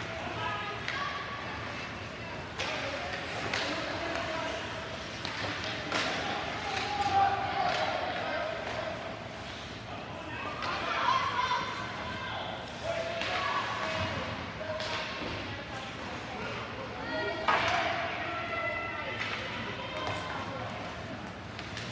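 Young players shout and call out across the rink.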